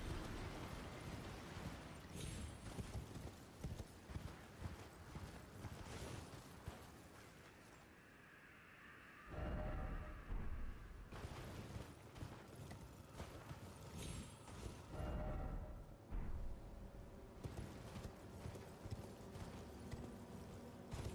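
A horse's hooves thud as it gallops over the ground.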